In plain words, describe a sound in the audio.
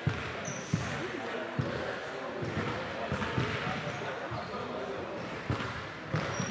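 Sneakers squeak and thud on a wooden gym floor.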